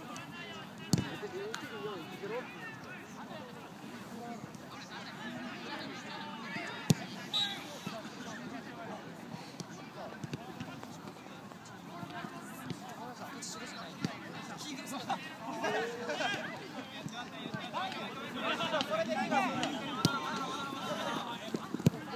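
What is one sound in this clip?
A football thuds as players kick it.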